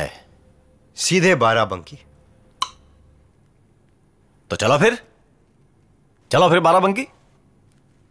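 A young man speaks calmly and quietly.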